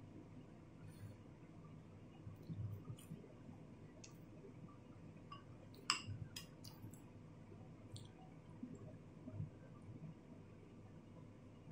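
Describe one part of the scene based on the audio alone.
A woman chews and slurps food close by.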